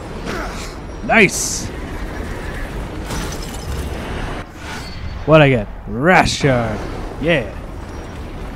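A bright magical chime rings out with swirling, gliding tones.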